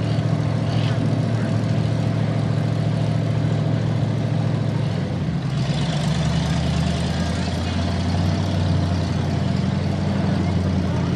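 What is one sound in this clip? A truck engine roars steadily.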